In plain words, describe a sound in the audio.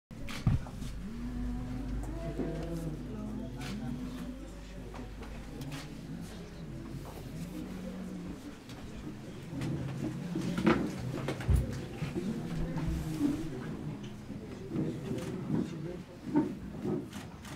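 An elderly man speaks quietly and warmly up close.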